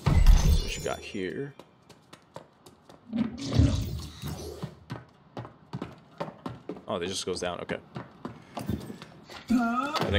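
Footsteps tread on stone and wooden planks.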